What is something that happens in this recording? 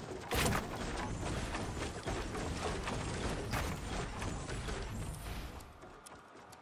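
A pickaxe strikes wooden planks with sharp knocks.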